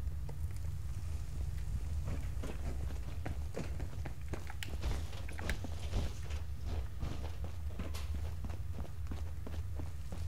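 Footsteps clank on a hard floor.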